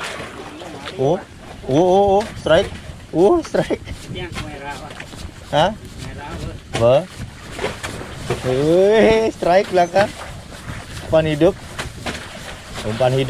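A man talks loudly with animation.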